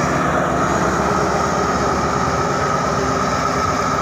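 A diesel locomotive engine drones as it pulls away.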